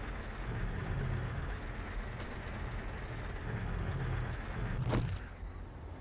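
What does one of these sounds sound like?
A heavy vehicle engine rumbles steadily while driving.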